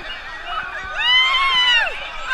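A woman whoops loudly nearby.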